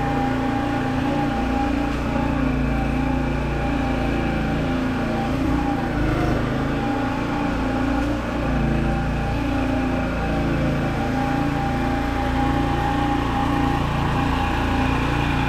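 A lawn mower engine drones steadily nearby, growing louder as it approaches.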